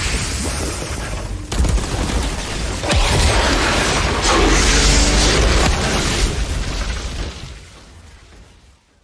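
Heavy blows thud and clash in a fight.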